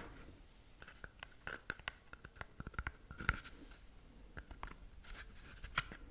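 Fingernails tap and scrape on a cardboard tube close to a microphone.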